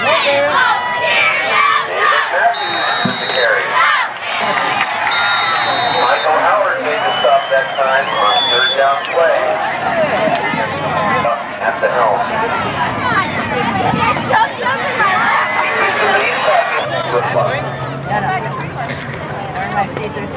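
A crowd of spectators talks and shouts outdoors.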